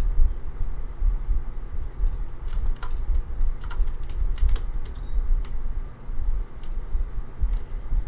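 Short game menu clicks sound in quick bursts.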